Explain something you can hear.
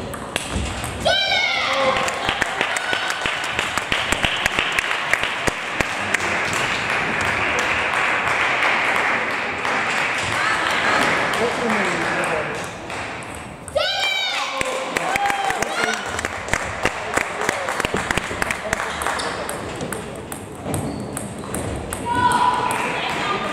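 Shoe soles squeak on a wooden floor in a large echoing hall.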